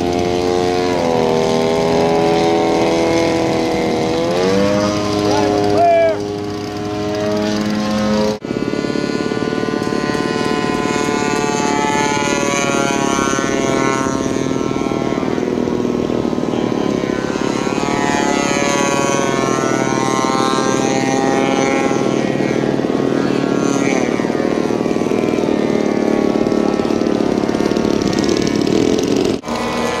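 A small model airplane engine whines overhead, rising and falling in pitch.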